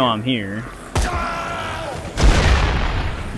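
A rifle fires with sharp bangs.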